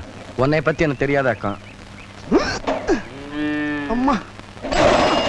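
A middle-aged woman speaks with animation nearby.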